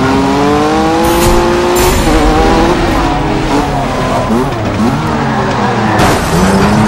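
A rally car engine roars loudly, its pitch rising and dropping as gears shift.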